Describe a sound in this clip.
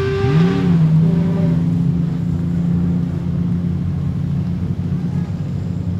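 Tyres screech as a car spins on a dirt track.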